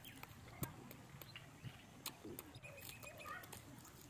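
A young woman bites and crunches on crispy food up close.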